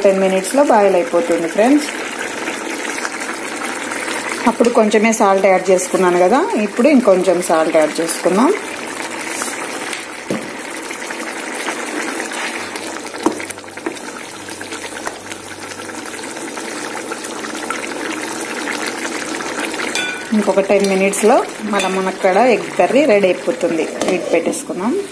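A thick sauce bubbles and simmers in a pan.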